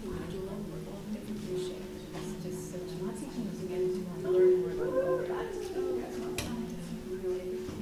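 People talk and murmur in a large echoing hall.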